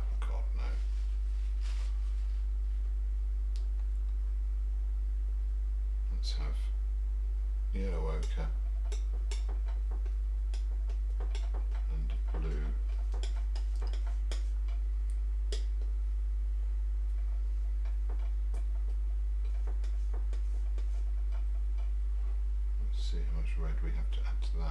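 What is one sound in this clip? A middle-aged man mumbles quietly to himself, close to a microphone.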